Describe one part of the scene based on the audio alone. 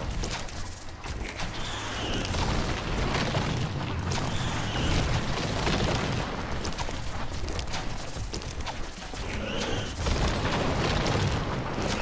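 A huge plant creature growls and hisses.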